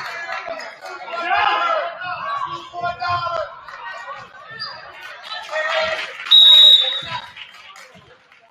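A crowd in an echoing gym cheers and shouts.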